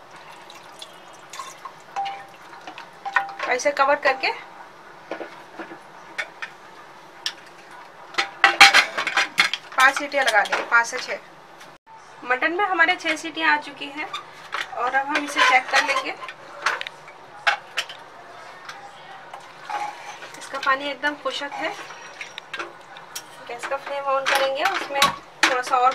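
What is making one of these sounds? A spatula scrapes and stirs food in a metal pot.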